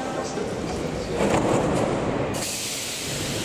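Subway train doors slide shut with a thud.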